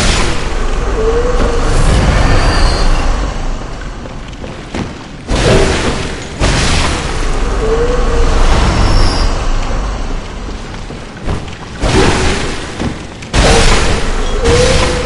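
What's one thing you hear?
Creatures shriek as they are hit.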